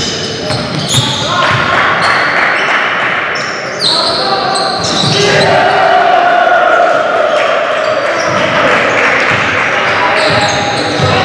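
Young men shout across an echoing gym.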